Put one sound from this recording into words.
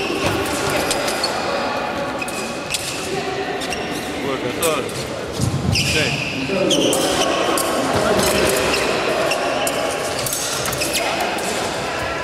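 Fencers' shoes stamp and squeak on a floor in a large echoing hall.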